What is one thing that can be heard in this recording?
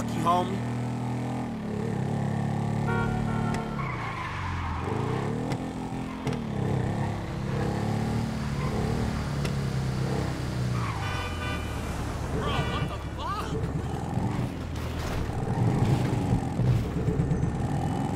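A motorcycle engine drones and revs up and down.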